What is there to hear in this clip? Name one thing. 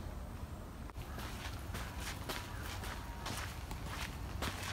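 Footsteps scuff along a dirt path.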